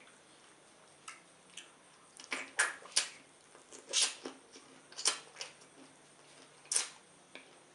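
A man chews wetly close to a microphone.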